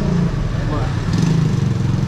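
A motorcycle engine rumbles past close by.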